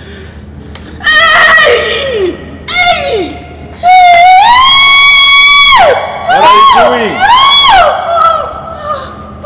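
A woman wails loudly in long, rising and falling cries.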